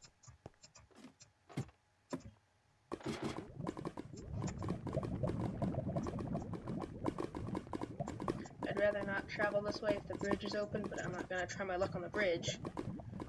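Lava bubbles and pops.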